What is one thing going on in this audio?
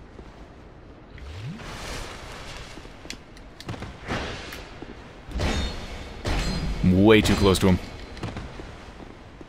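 A spell whooshes and shimmers.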